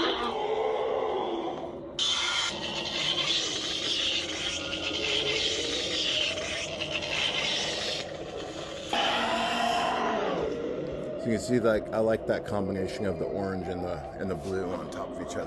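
A toy light sword hums and whooshes as it swings.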